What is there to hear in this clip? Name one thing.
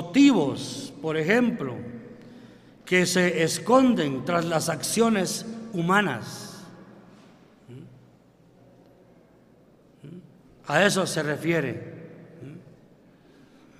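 An elderly man preaches with animation through a loudspeaker in a large echoing hall, with long pauses.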